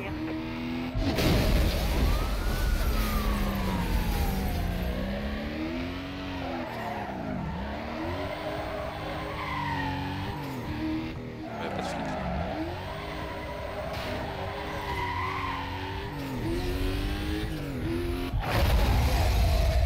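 Cars crash together with a heavy thud.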